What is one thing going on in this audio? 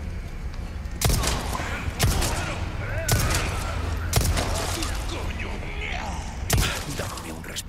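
A pistol fires sharp shots that echo.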